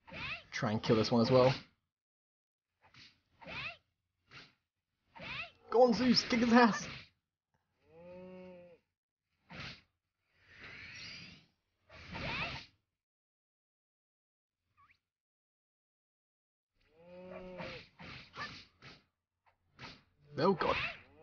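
Video game sound effects of a sword fight ring out in short bursts.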